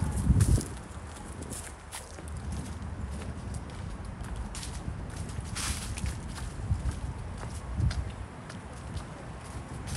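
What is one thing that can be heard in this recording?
Footsteps crunch and rustle through dry fallen leaves.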